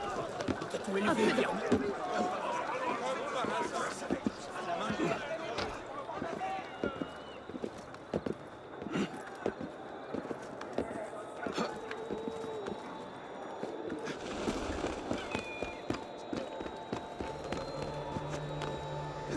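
Hands and boots scrape and thud against stone while climbing a wall.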